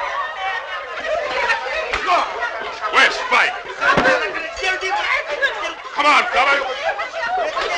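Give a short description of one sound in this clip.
A group of men talk and call out with excitement.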